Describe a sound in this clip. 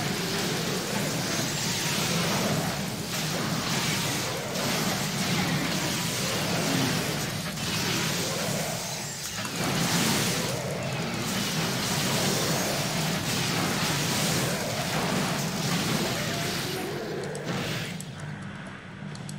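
Game battle sounds clash and crackle.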